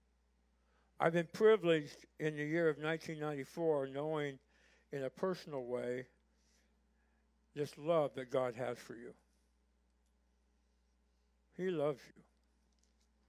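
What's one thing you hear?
An older man speaks calmly through a microphone.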